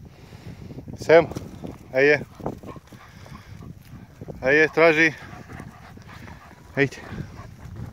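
A dog yelps in short, high cries nearby.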